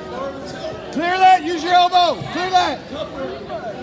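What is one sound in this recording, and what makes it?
A man shouts loudly to encourage a wrestler.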